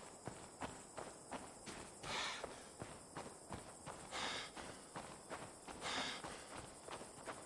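Tall grass rustles and swishes against legs.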